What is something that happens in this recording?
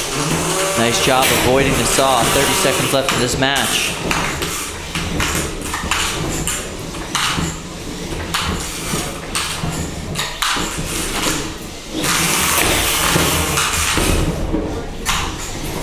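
Small combat robots whine and buzz as they drive across a hard floor.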